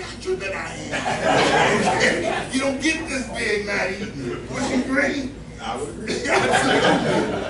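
A middle-aged man speaks with animation in a slightly echoing room.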